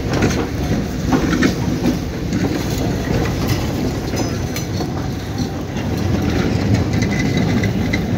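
A train rolls slowly past close by with a heavy rumble.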